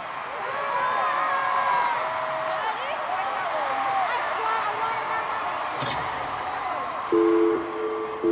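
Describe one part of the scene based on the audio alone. A large crowd cheers and screams loudly in an echoing arena.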